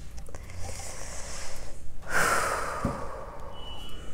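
A card is laid down on a hard table with a light tap.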